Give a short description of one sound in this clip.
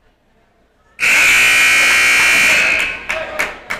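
A referee's whistle blows loudly in a large echoing gym.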